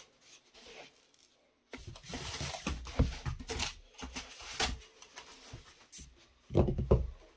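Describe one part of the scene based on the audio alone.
Light plastic and foam pieces knock and scrape on a table.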